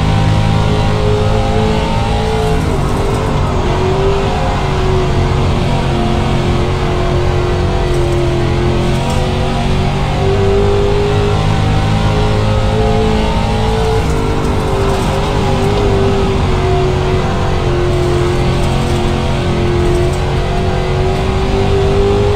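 A race car engine roars loudly and steadily, its pitch rising and falling as it speeds along.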